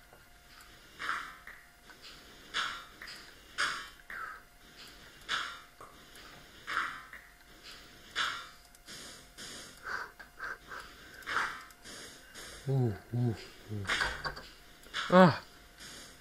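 Blocks crunch and crumble as they are broken, again and again.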